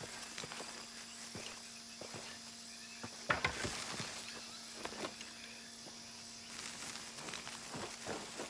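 Leaves and ferns rustle as something brushes through them.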